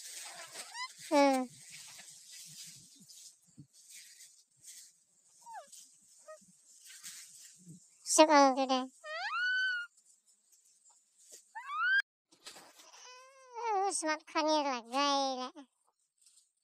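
A young girl speaks and calls out in a high voice close by.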